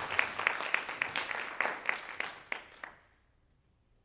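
An audience applauds in an echoing hall, then the clapping dies away.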